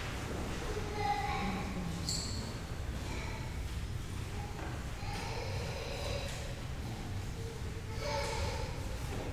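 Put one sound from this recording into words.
A man speaks quietly in a large echoing room.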